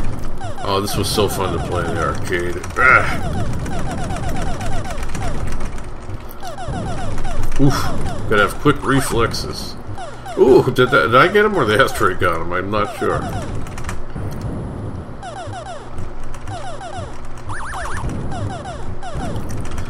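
Retro arcade laser shots fire in quick bursts.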